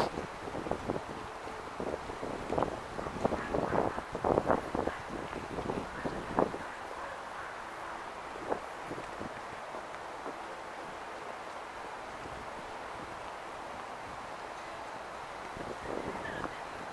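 City traffic hums steadily in the distance.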